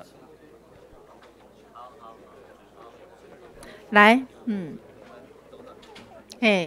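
Several people murmur and talk in the background.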